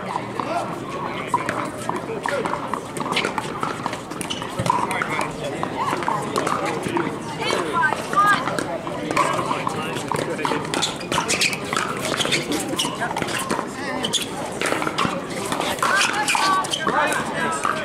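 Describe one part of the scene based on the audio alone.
Paddles pop sharply against plastic balls, again and again.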